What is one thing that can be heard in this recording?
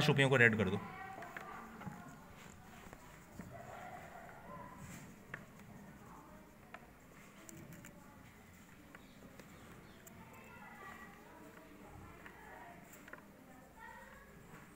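A crayon rubs softly on paper.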